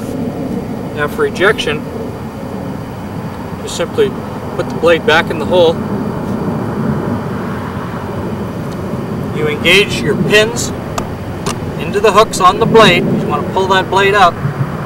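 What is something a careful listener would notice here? A man speaks calmly nearby outdoors.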